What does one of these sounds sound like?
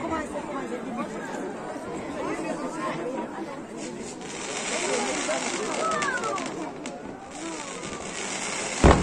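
A crowd of people chatters and cheers nearby.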